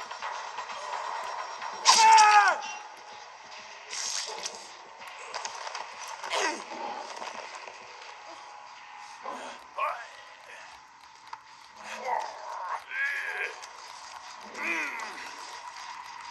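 Game sound plays from a handheld console's small speakers.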